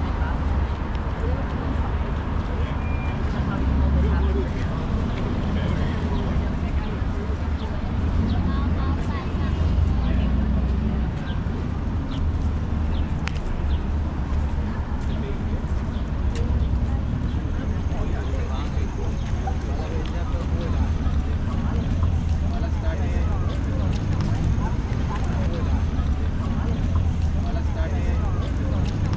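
A crowd of pedestrians chatters.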